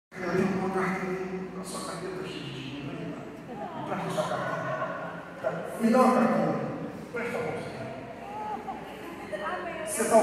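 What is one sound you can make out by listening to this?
A man speaks with animation, his voice echoing in a large hall.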